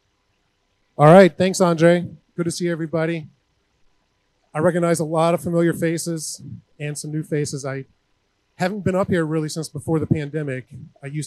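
A man speaks to an audience through a microphone, with pauses.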